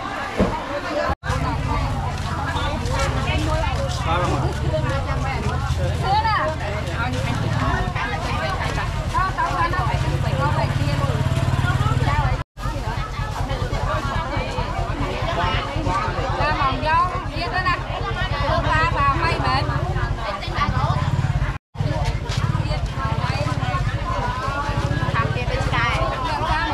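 A crowd of men and women chatter all around in a busy outdoor market.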